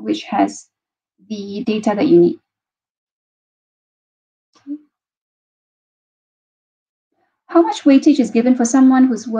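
A woman speaks calmly into a microphone, as if on an online call.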